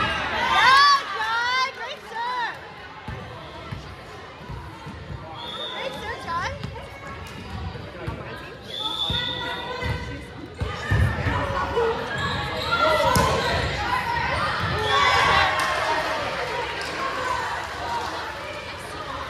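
A volleyball thumps as it is struck.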